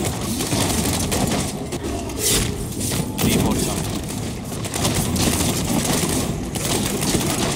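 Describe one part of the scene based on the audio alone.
Game spells crackle and blast in rapid bursts.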